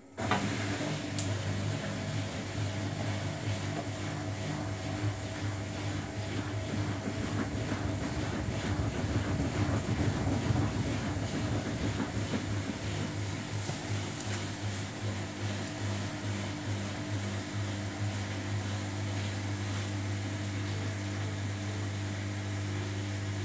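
A front-loading washing machine's drum turns with a low motor hum.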